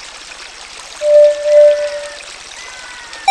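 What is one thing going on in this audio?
A flute-like ocarina plays a short run of notes.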